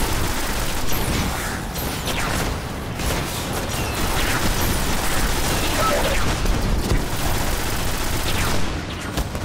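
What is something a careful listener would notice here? Energy blasts crackle and hiss.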